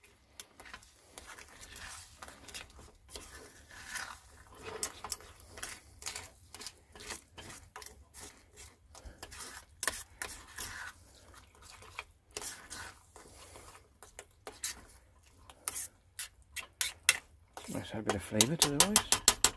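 A metal spoon scrapes and clinks against a small pan.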